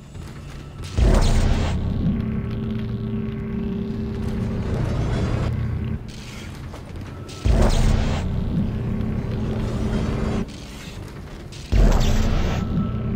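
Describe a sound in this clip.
A heavy sliding door opens with a loud rushing whoosh.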